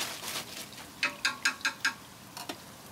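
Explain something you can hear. A metal basket knocks against a metal pan several times.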